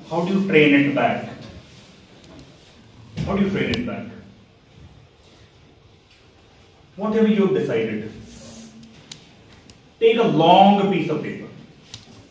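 A man speaks in short bursts with pauses, in an echoing room.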